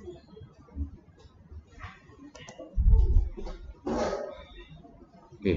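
A man speaks quietly into a nearby microphone.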